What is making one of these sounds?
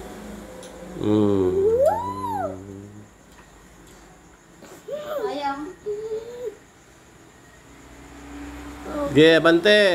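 A young boy speaks and exclaims with animation close by.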